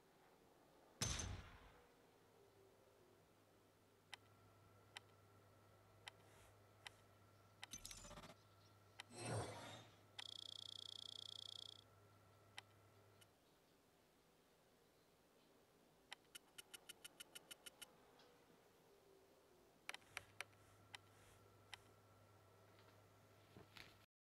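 Short game menu clicks and chimes sound now and then.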